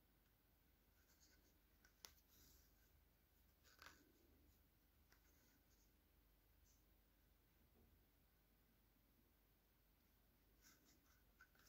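Thread rasps softly as it is pulled through knitted yarn.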